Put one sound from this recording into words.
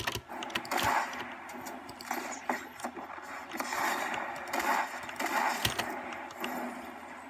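Sharp gunshots and clattering effects of a video game play through a small speaker.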